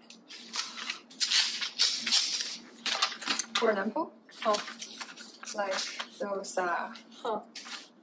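Paper pages rustle as they are turned and handled.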